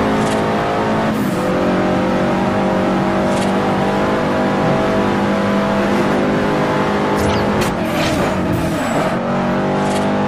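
A racing car engine drops in pitch as gears shift.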